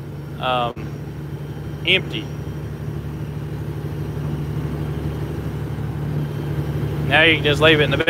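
A vehicle engine hums steadily while driving.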